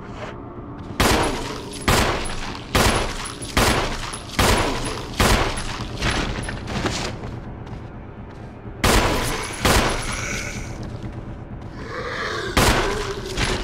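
A pistol fires shot after shot.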